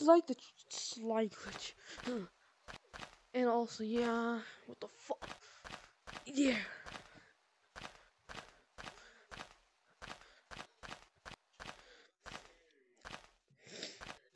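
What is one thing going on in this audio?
Footsteps patter quickly on soft ground.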